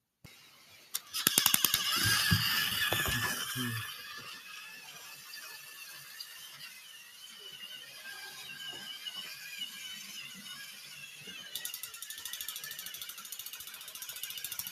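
A battery toy train whirs steadily along a track.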